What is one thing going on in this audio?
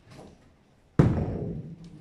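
A heavy bowling ball thuds down onto a lane.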